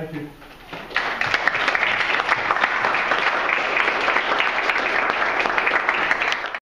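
A crowd claps and applauds in a large room.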